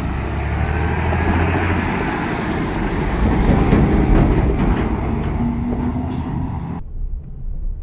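A diesel tractor drives past close by, pulling a trailer.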